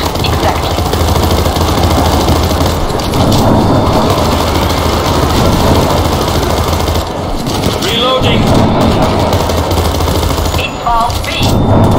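A rifle fires in rapid, rattling bursts.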